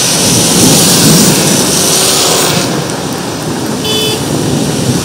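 Car tyres hiss along a wet road.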